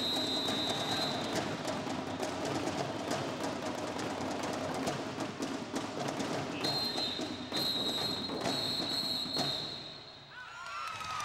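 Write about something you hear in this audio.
Drums beat in a fast, loud rhythm.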